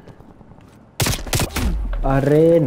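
Gunshots crack in a quick burst.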